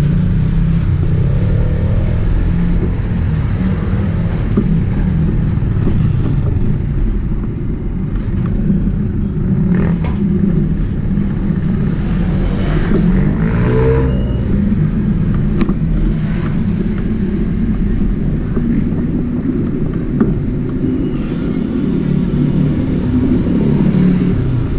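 Wind rumbles loudly across a moving microphone outdoors.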